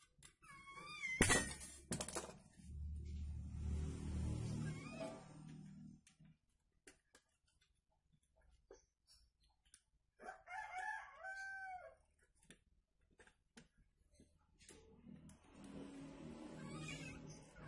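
Small metal parts click and clink as they are handled close by.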